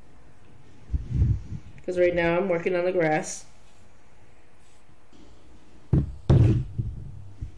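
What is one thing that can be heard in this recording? A hand bumps against a wooden board.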